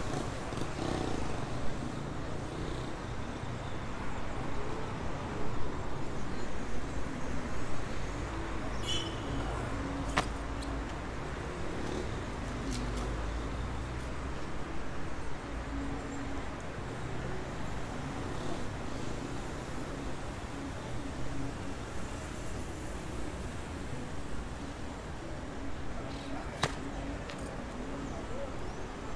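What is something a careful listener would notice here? Traffic rumbles steadily on a nearby road.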